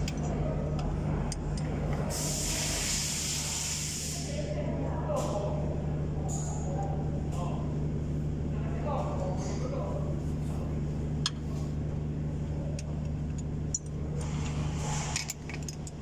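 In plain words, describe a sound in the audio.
Metal parts clink and knock as a mechanic works on an engine fan.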